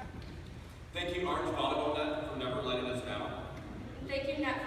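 A young woman speaks through a loudspeaker in a large echoing hall.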